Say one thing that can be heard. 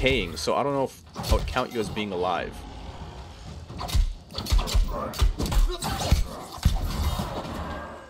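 A sword slashes and clangs in quick, heavy blows.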